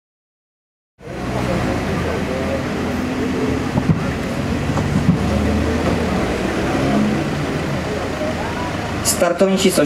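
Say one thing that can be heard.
A rally car engine idles and rumbles as the car rolls slowly forward.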